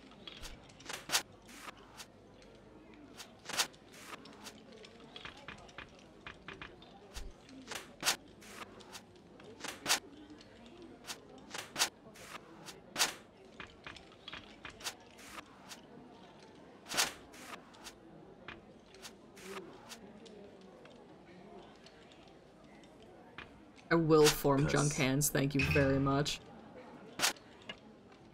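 Playing cards snap down with short clicks, again and again.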